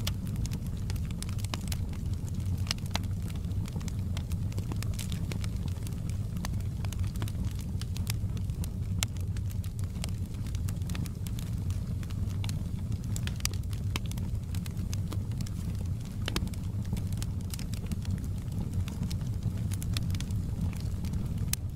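Burning logs crackle and pop sharply now and then.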